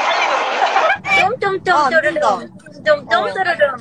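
A young woman talks and laughs into a microphone.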